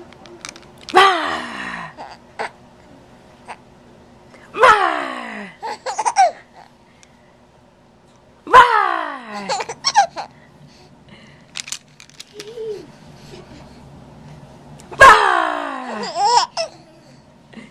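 A baby squeals loudly in short, high bursts close by.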